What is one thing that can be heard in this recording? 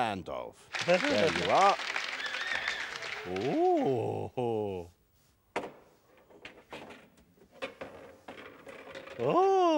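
A man speaks in an exaggerated, animated puppet voice, with swooping rises and falls in pitch.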